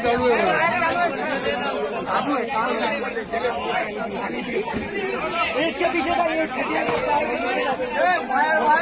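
A crowd of men shout and call out to each other close by.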